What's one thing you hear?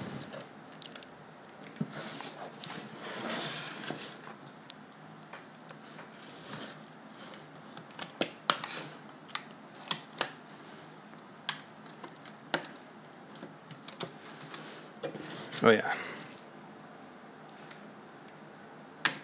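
A utility knife scrapes and cuts through rubbery foam.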